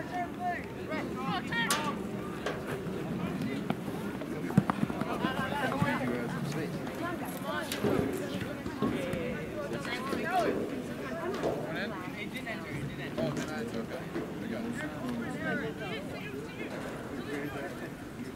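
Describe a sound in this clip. Spectators talk nearby.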